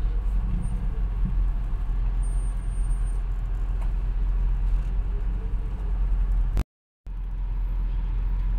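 A car's low road rumble is heard from inside the car.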